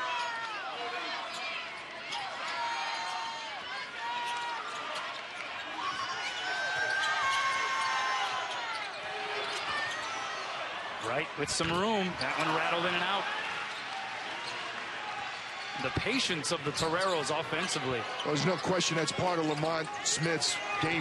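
A large crowd murmurs in an echoing arena.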